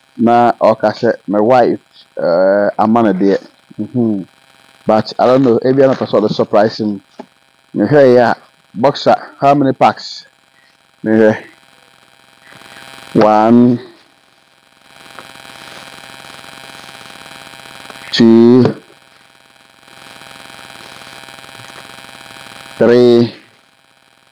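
A man speaks loudly and with animation close by, in short bursts.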